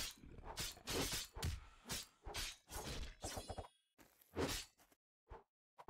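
Blades swish and clash in a fight.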